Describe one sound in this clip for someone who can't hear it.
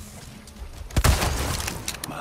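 A rifle shot rings out with a loud bang.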